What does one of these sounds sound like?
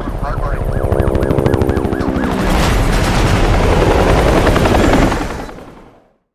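Car engines roar past at speed.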